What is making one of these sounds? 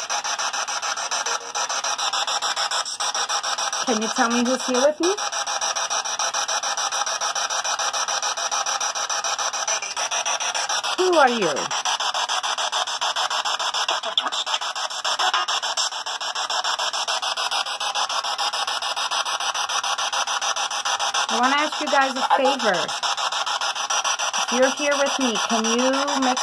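A handheld radio scanner hisses with fast, choppy static.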